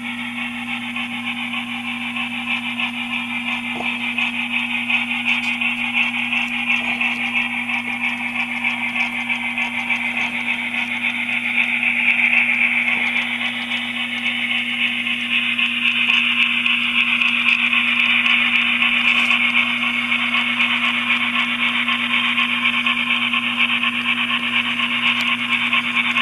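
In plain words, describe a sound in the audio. Small train wheels click and rumble along the track.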